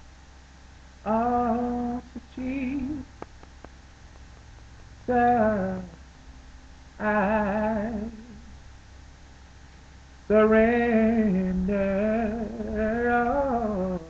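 A young man sings close by, in soulful wavering phrases with pauses between them.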